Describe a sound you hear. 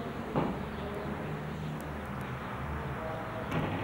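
A door swings shut.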